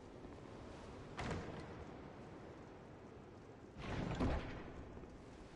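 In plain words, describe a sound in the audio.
A heavy wooden chest lid creaks open and thuds.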